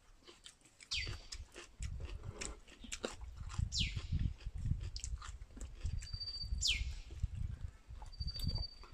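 A man chews and slurps food noisily close by.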